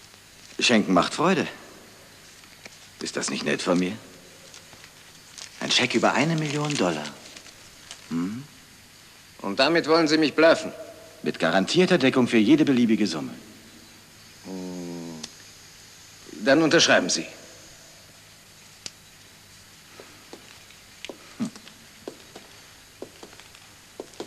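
An older man answers in a low voice.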